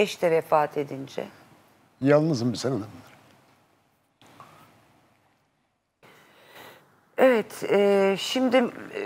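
An elderly man speaks in a wavering, emotional voice, in short bursts with pauses.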